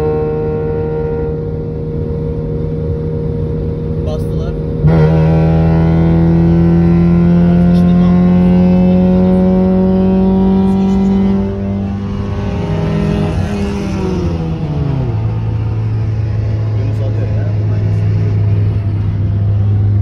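A car engine hums steadily nearby, then revs up loudly and slowly climbs before dropping back.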